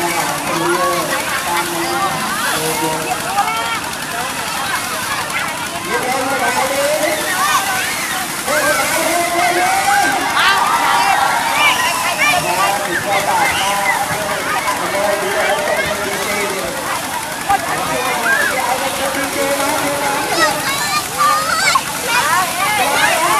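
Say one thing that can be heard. A large outdoor crowd of men, women and children shouts, chatters and laughs excitedly.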